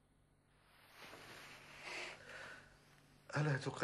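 An elderly man murmurs weakly.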